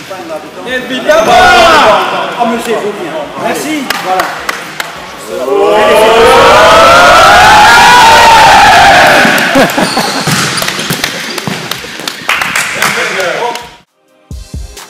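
Young men cheer and shout loudly in an echoing hall.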